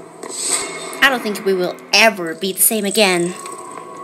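A young girl speaks with animation.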